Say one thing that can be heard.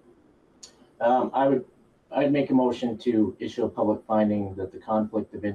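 A man speaks calmly, heard through a microphone in a room.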